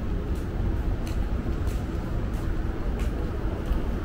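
Footsteps tap steadily on a hard tiled floor.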